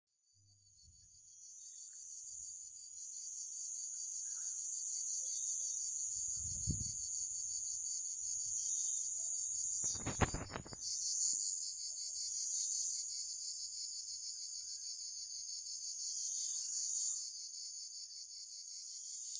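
A fly buzzes with a steady, high drone.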